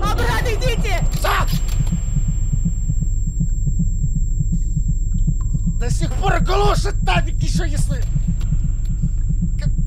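A young man talks animatedly and close into a microphone.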